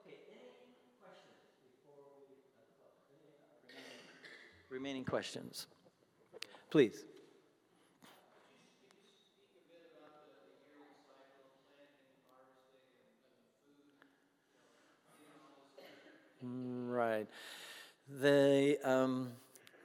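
An elderly man speaks animatedly into a microphone in a large echoing hall.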